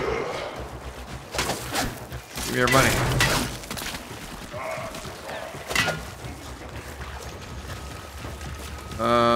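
Feet splash through shallow water in quick steps.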